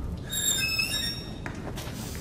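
A wooden door creaks as it swings open.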